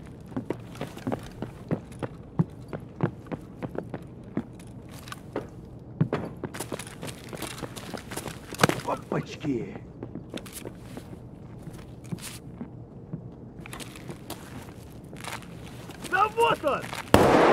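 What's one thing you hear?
Footsteps crunch over rubble and debris.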